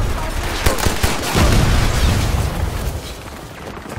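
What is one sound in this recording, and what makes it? A heavy explosion booms and rumbles.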